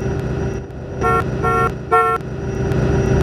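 A bus horn honks in short blasts.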